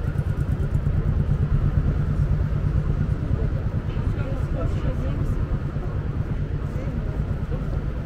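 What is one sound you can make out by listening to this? Cars drive past on a street nearby.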